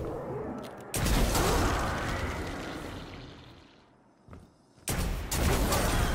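Gunshots fire in bursts from a rifle.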